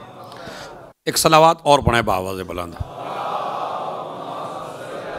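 A man speaks into a microphone with feeling.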